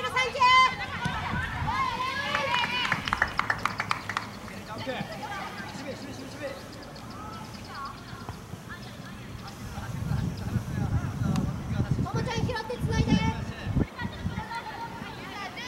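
Young players shout and call to each other across an open field.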